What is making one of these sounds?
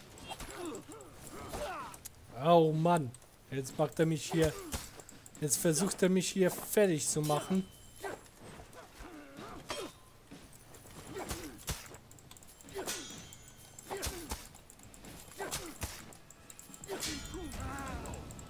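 Swords clash and clang in a fight.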